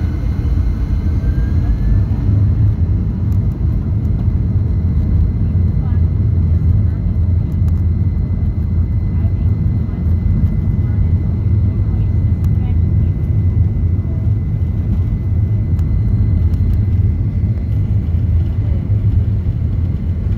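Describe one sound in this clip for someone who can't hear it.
Wheels rumble and thump on the runway.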